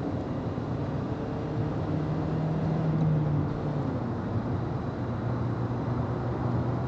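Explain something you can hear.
A car engine hums steadily from inside the car, rising a little in pitch and then settling.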